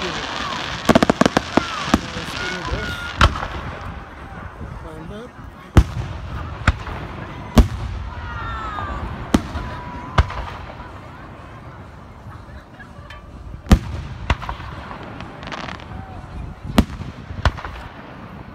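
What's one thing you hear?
Fireworks burst with loud booms and cracks.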